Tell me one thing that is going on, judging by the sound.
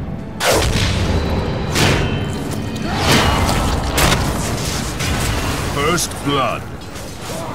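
Weapons clash and slash with heavy impacts.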